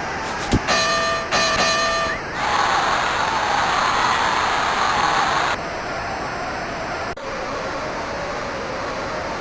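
A crowd roars and cheers steadily.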